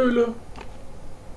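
A man speaks briefly, close to a microphone.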